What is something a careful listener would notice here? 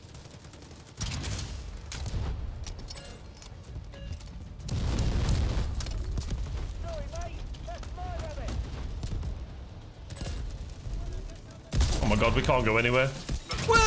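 Gunfire and explosions crack and boom from a game.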